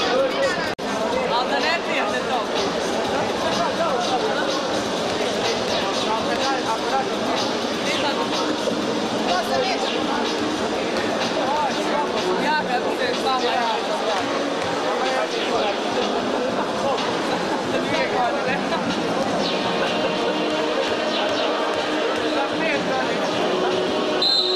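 A crowd chatters and murmurs throughout a large echoing hall.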